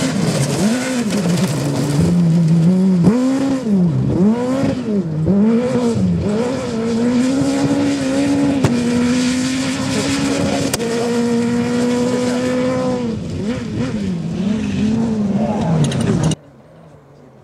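A rally car engine revs hard and roars as the car speeds past.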